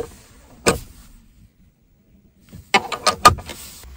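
A plug clicks into a socket.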